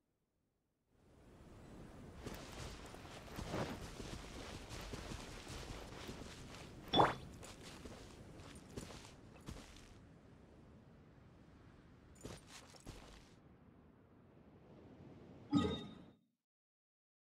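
Footsteps run through rustling grass.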